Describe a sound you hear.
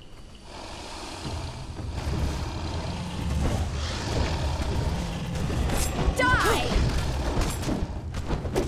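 Large beasts growl and roar close by.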